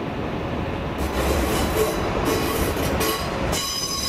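Train wheels squeal and clatter over points.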